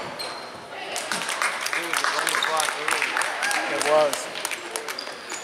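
Spectators clap and cheer.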